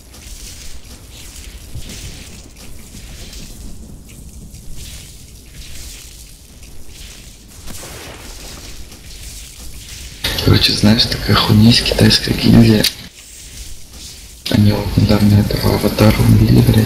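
Electric spells crackle and zap in bursts.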